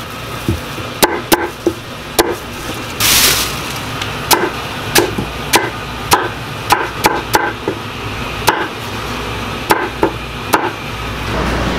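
A knife chops through vegetables onto a wooden board with sharp knocks.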